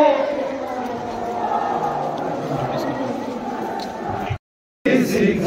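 A large crowd murmurs and shuffles outdoors.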